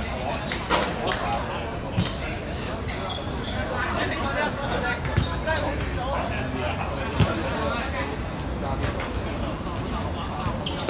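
Young men shout and call out to each other at a distance.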